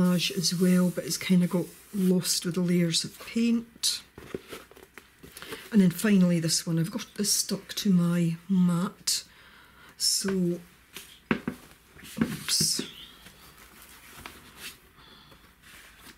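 Sheets of paper and card rustle and tap as they are shuffled by hand.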